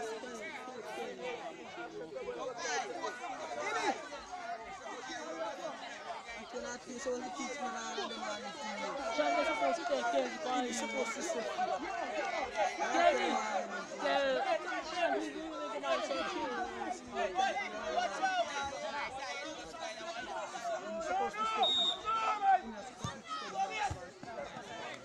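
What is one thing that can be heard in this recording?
Several young men shout and call out across an open field.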